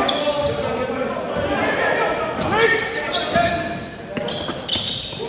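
Basketball shoes squeak sharply on a hard court in an echoing hall.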